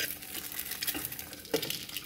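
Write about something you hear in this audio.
An egg sizzles in a frying pan.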